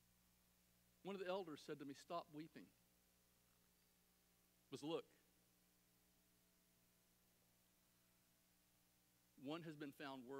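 A middle-aged man speaks calmly through a microphone, with long pauses.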